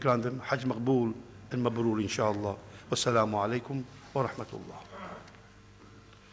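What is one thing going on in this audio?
A middle-aged man speaks calmly into a microphone in a reverberant hall.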